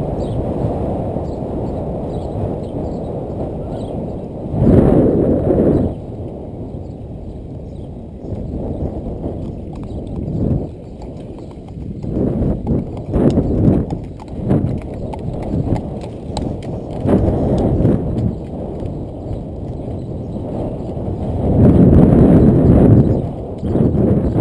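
Wind buffets the microphone in strong gusts outdoors.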